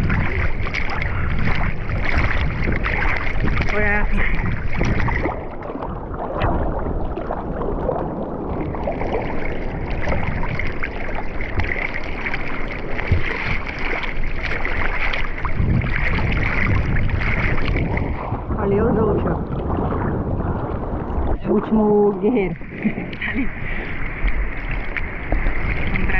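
Water laps and splashes close by.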